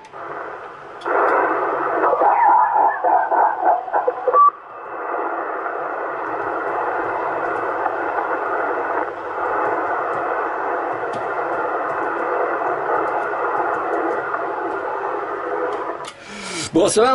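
A radio loudspeaker hisses with steady static noise.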